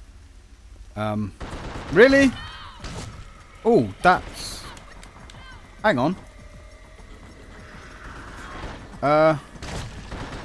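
Shotgun blasts boom loudly a few times.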